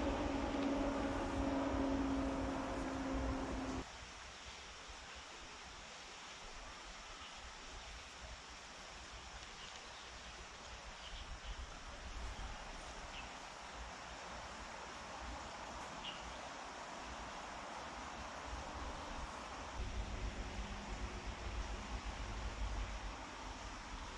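A shallow stream trickles gently over stones.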